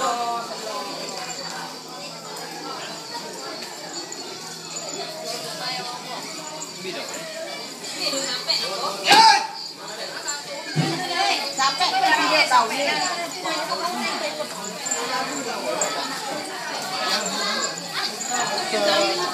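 A crowd of young men and women chatter nearby.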